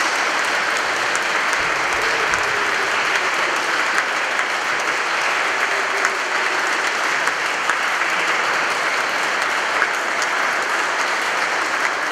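An audience claps steadily in a large echoing hall.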